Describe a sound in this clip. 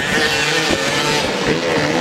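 Tyres skid and scatter loose dirt.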